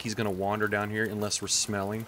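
A campfire crackles.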